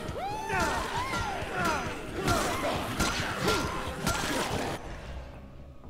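Zombies groan and shriek in a crowd.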